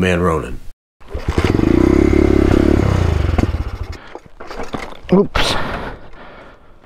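A small motorcycle engine idles and revs close by.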